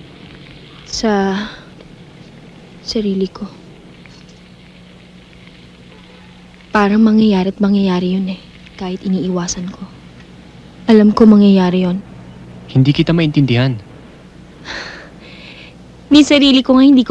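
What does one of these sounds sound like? A young woman talks softly and then speaks brightly, with a smile in her voice.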